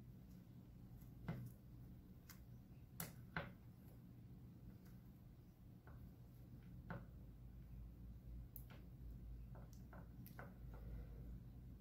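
Wires click and rustle as hands handle them.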